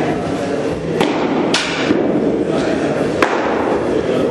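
A baseball smacks sharply into a net.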